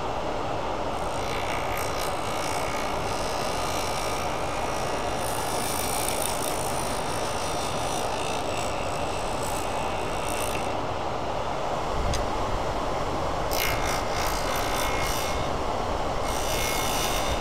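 A metal tool scrapes against a spinning workpiece.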